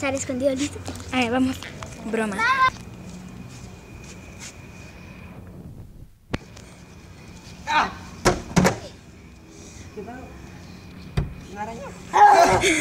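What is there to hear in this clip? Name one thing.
Young children shout and squeal playfully close by.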